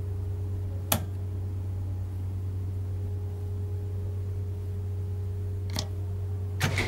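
A switch clicks on a control panel.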